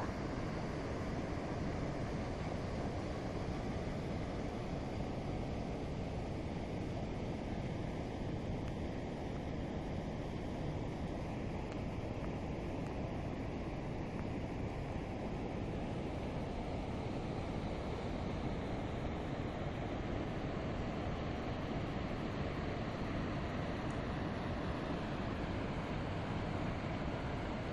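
Rushing water roars steadily over a weir.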